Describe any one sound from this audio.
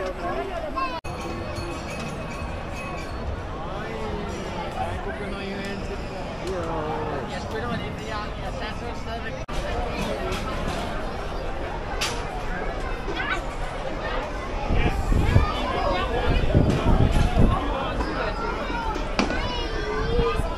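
A crowd of people chatters and murmurs all around.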